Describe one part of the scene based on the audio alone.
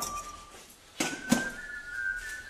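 Metal utensils clink against steel pots.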